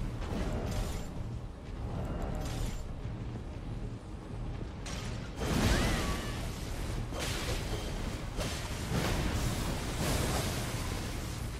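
Fiery blasts whoosh and crackle.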